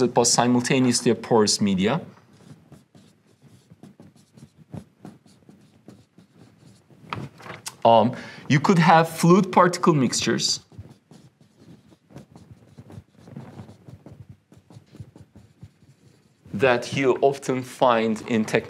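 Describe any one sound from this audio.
A young man speaks calmly and clearly, as if lecturing.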